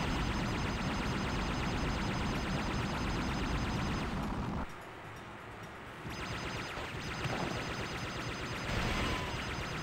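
A plane engine drones steadily as a small craft flies.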